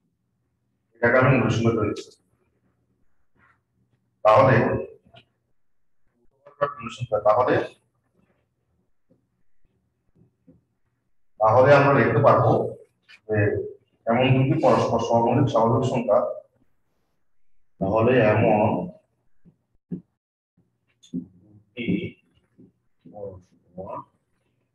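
A man speaks calmly and clearly, as if explaining, close to a microphone, in short bursts with pauses.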